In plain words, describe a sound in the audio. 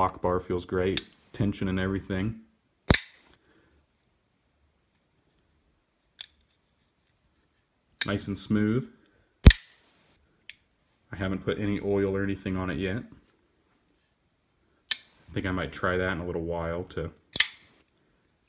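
A folding knife blade snaps open and shut with sharp metallic clicks.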